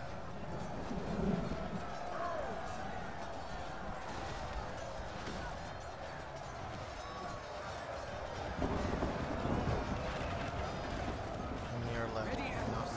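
A large battle rages with the clash of many weapons.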